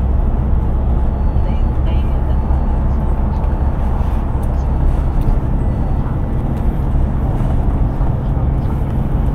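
A bus engine rumbles steadily as it drives along a highway.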